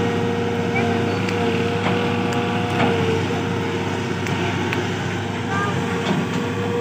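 An excavator engine rumbles steadily nearby, outdoors.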